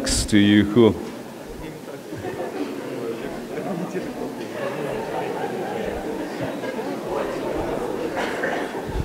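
An audience laughs and murmurs.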